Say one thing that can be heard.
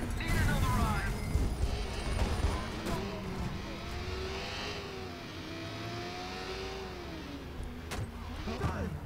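A motorcycle engine revs and roars.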